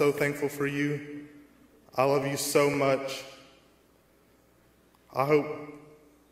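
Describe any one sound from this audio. A man speaks slowly and solemnly into a microphone in a large echoing hall.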